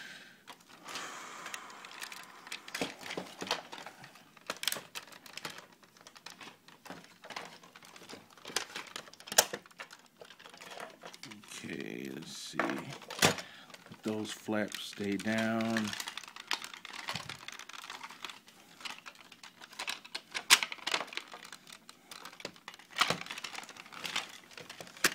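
Plastic toy parts click and clack as they are twisted by hand.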